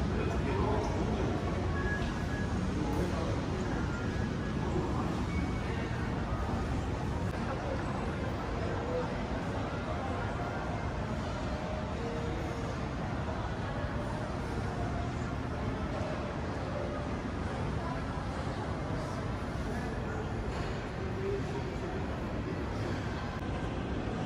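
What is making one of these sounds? Indistinct voices murmur and echo in a large hall.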